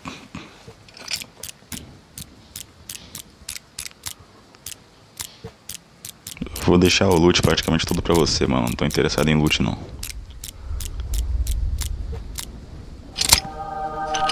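A combination lock's dials click quickly, one notch at a time.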